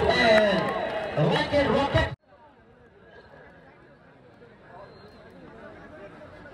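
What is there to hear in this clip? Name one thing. A large outdoor crowd murmurs and chatters in the distance.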